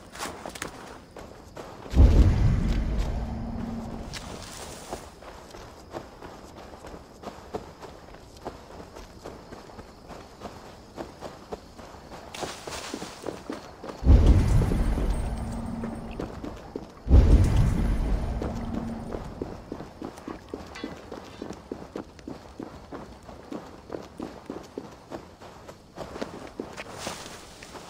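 Footsteps crunch steadily over grass and gravel.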